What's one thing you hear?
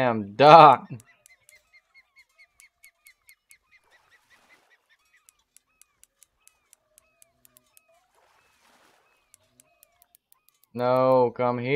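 A fishing reel clicks steadily as it is wound in.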